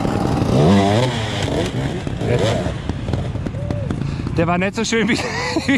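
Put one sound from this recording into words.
Dirt bike engines rev and roar loudly nearby.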